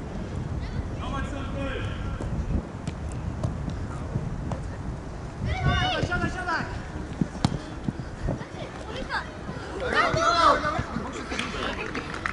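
Children shout excitedly outdoors.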